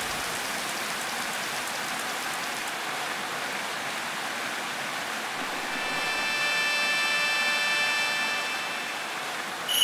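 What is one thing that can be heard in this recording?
Water rushes steadily down a waterfall.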